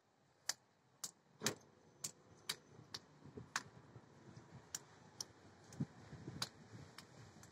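A toddler claps small hands.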